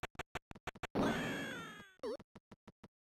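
A retro video game blast crashes and slowly fades.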